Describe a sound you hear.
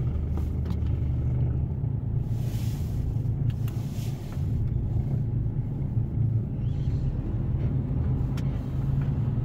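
A truck's diesel engine rumbles steadily.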